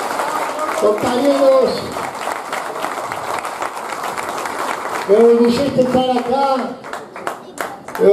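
A large crowd claps and cheers.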